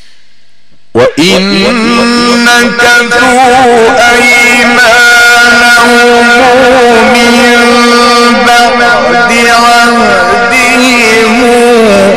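A man chants loudly through a microphone and loudspeaker.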